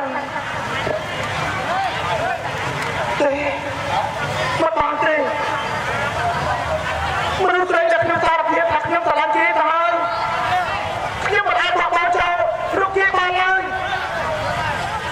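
A young man sings in a high, drawn-out voice through a microphone and loudspeakers.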